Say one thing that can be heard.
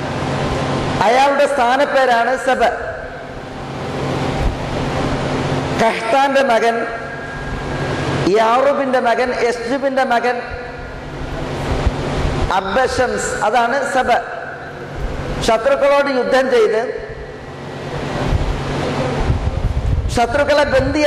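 A middle-aged man speaks calmly into a microphone in bursts, with pauses between phrases.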